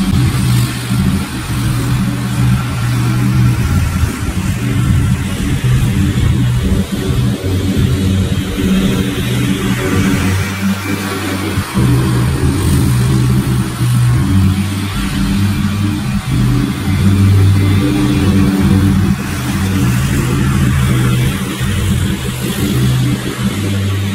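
A riding mower's engine drones steadily, rising and falling as it cuts through tall grass.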